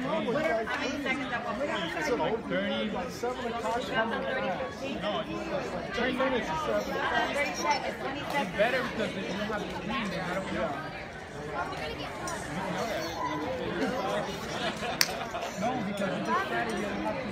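Many men and women chatter at once in a large echoing hall.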